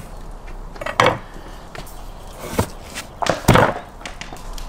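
Meat thumps down on a wooden board.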